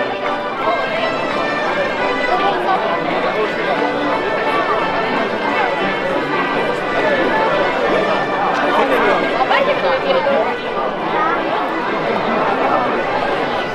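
A large outdoor crowd of men, women and children chatters and talks all around.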